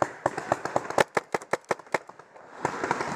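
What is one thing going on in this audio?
A paintball marker fires a rapid burst of shots close by.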